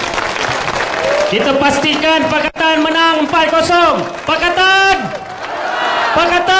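A crowd of men chants together in unison.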